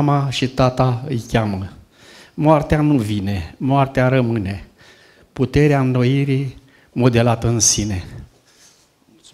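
An elderly man reads aloud steadily into a microphone, heard through loudspeakers.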